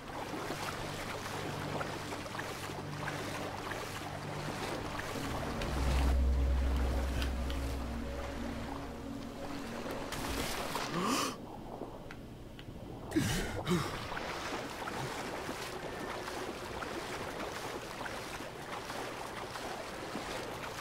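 Water splashes and laps with each swimming stroke.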